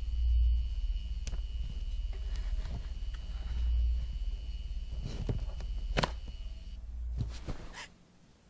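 A power strip switch clicks.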